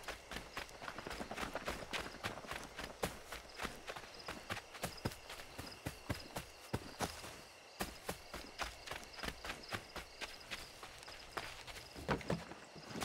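Footsteps patter quickly over dirt.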